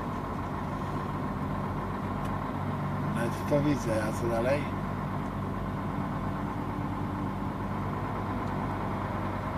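A large vehicle's engine hums steadily while driving.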